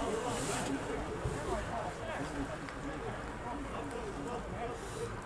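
Men shout to each other from across an open outdoor field.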